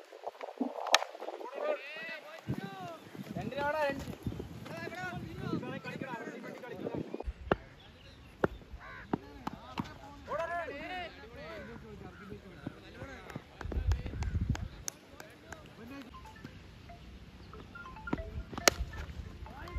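A cricket bat sharply strikes a ball outdoors.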